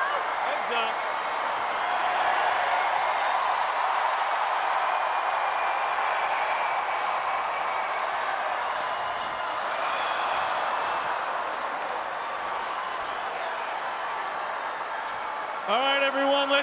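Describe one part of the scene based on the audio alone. A large crowd cheers and applauds in a big echoing stadium.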